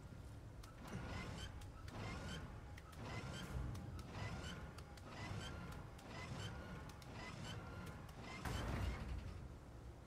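A metal wheel ratchets with regular clicks as it is cranked.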